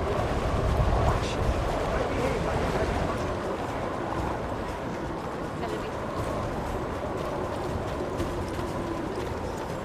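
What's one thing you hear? Footsteps crunch on snowy ground.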